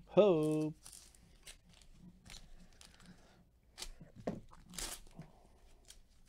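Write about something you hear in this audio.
A plastic card wrapper crinkles.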